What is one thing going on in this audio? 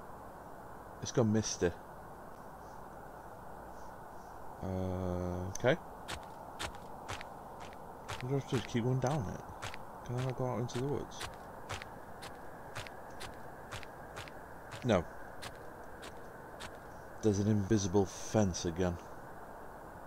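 A man talks calmly into a microphone, close by.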